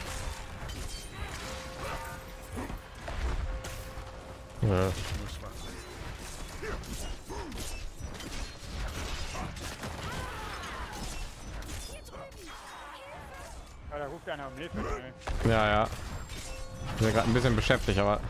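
Magic blasts boom and crackle.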